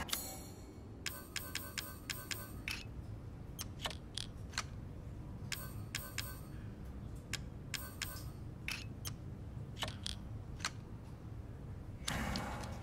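Short soft menu clicks tick now and then.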